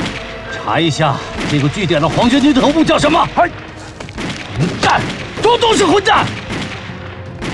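A man speaks urgently in a low voice, close by.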